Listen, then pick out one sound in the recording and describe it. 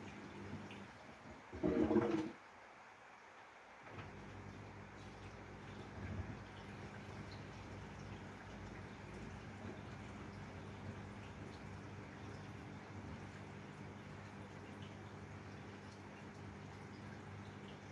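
Water sloshes inside a washing machine drum.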